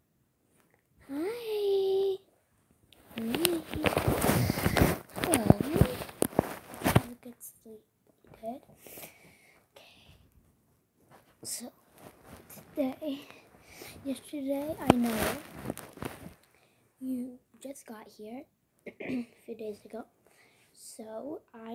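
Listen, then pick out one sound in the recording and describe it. A young girl talks close to a phone's microphone with animation.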